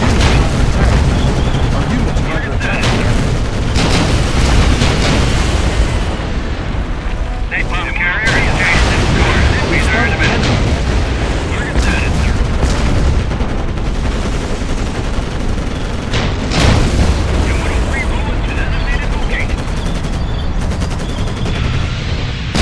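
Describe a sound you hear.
Shells explode with heavy booms in a video game battle.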